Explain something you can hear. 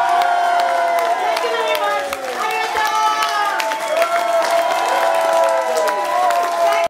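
A rock band plays loudly through amplifiers.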